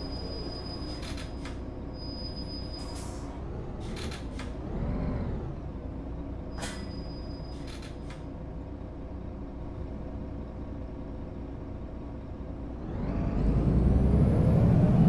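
A bus engine hums steadily.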